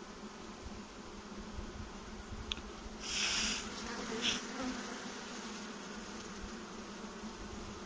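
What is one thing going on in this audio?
Honeybees buzz steadily up close.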